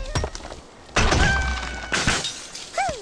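Wooden blocks crash and clatter as a structure collapses.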